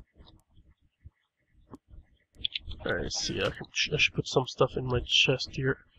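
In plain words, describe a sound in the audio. A chest lid clicks open in a game.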